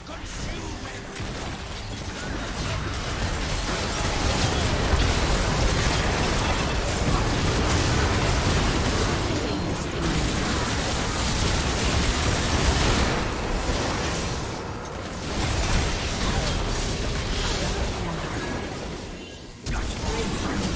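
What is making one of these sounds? Spell blasts, clashing weapons and explosions crackle and boom in a fast video game battle.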